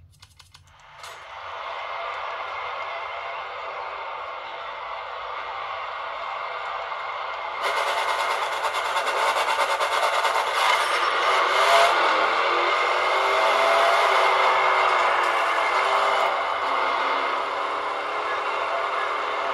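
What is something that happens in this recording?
Roaring truck engines and game music play loudly from a small game console speaker.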